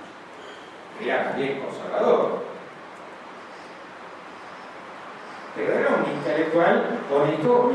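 An elderly man speaks calmly into a microphone, heard through loudspeakers.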